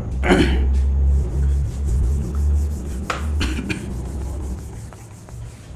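A cloth rubs across a whiteboard.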